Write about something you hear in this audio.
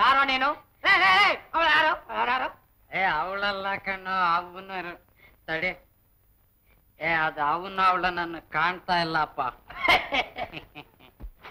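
A young man talks quickly and with animation, close by.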